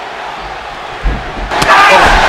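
A body thuds onto a soft floor.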